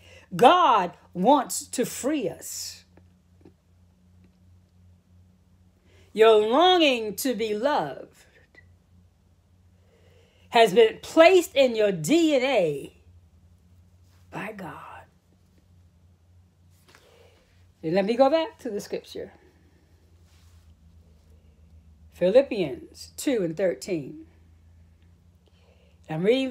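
A middle-aged woman speaks close to the microphone in short, deliberate phrases with pauses.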